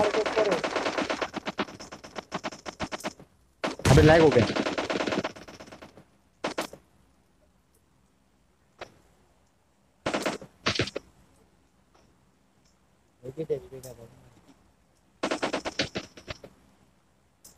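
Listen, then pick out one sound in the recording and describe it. Rapid automatic gunfire rattles in short bursts.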